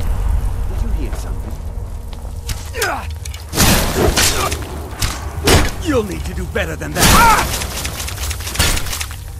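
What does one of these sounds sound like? A man's gruff voice speaks and shouts.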